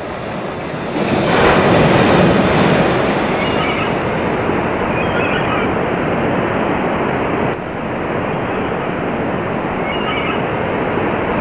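Heavy waves crash and roar against rocks.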